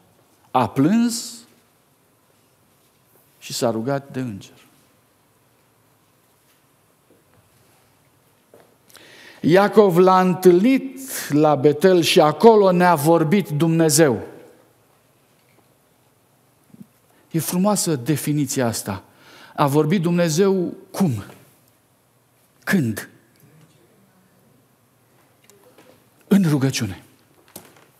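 A middle-aged man preaches with animation through a microphone, with long pauses.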